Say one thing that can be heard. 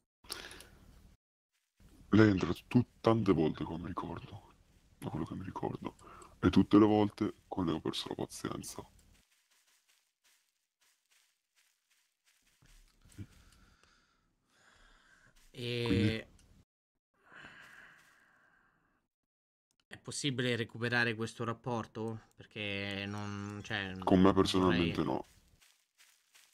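A man talks with animation into a close microphone, with pauses.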